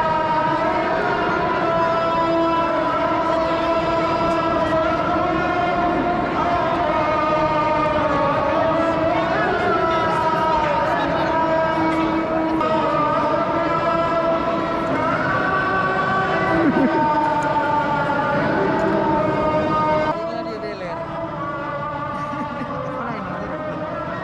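A crowd of people murmurs and chatters in a large echoing space.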